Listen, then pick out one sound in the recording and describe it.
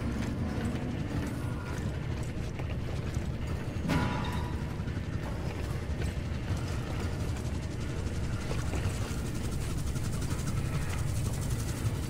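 Heavy boots clank on a metal floor.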